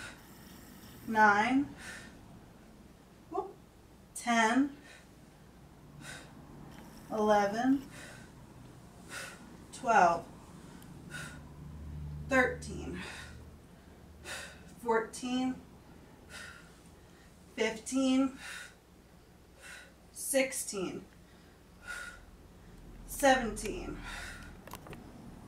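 A woman speaks in short, breathless bursts close by, in time with her exercise.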